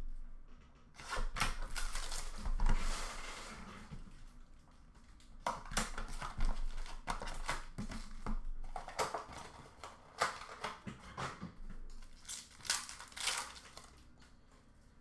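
Foil card packs rustle and crinkle in someone's hands.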